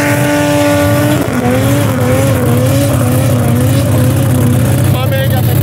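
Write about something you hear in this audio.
A car engine roars loudly.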